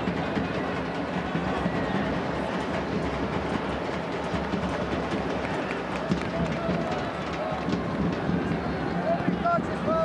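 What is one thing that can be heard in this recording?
A large stadium crowd roars and chatters steadily.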